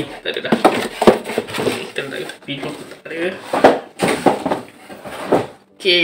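Cardboard scrapes and thumps as a box is handled.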